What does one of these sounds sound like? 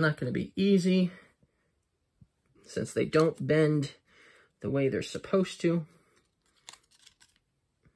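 Playing cards rustle and tap softly as they are handled.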